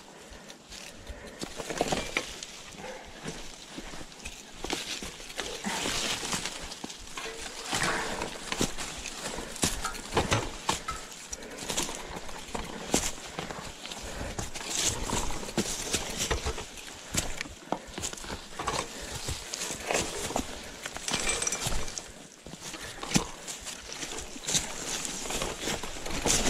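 A bicycle frame rattles and clatters over bumps.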